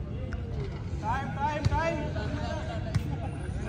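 Players shout on the court.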